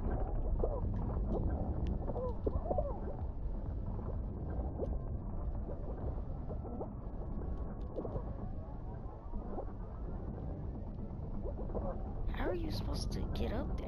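Upbeat electronic game music plays steadily.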